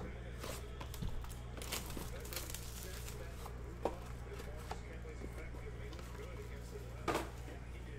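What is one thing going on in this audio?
Cardboard packaging crinkles and tears as a box is opened.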